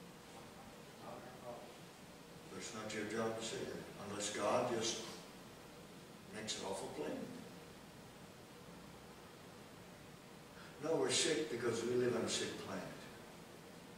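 An elderly man speaks calmly into a microphone.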